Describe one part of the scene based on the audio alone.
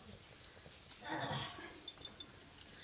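Oil pours into a metal pan.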